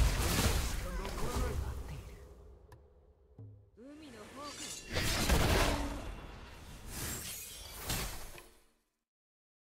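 Magical blasts and sword slashes crash and whoosh in quick bursts.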